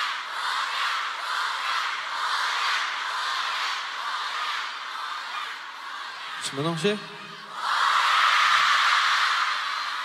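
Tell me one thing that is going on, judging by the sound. A large crowd screams and cheers in a vast open arena.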